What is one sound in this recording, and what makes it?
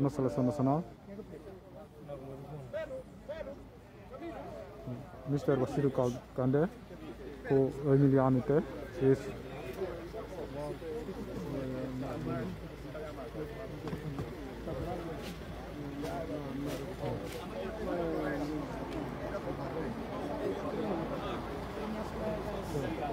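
Several men talk loudly close by.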